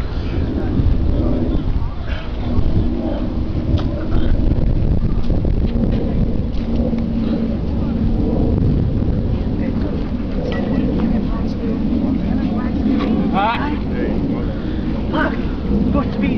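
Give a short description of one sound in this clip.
Young men talk with animation nearby outdoors.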